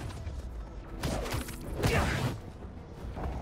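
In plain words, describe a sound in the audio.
A rushing whoosh sweeps past as a figure swings through the air.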